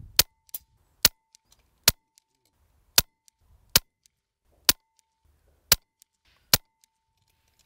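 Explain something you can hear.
An air rifle fires with sharp cracks, shot after shot.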